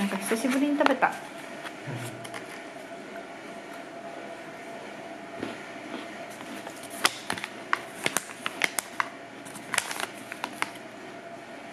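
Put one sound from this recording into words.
Paper packaging crinkles and rustles in hands.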